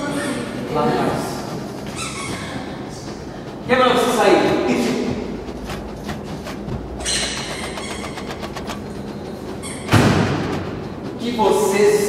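Other men shout back in agitation.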